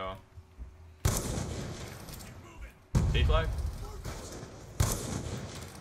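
A rifle fires several loud, booming shots that ring out.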